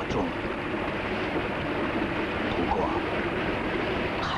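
An elderly man speaks gravely and slowly, close by.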